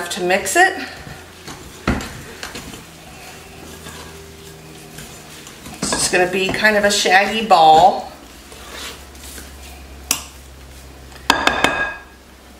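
A wooden spoon scrapes and stirs in a bowl.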